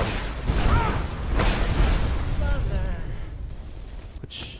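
Fire roars and crackles in a steady rush.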